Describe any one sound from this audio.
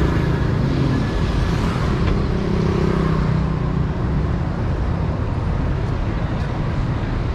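Traffic rumbles steadily along a street outdoors.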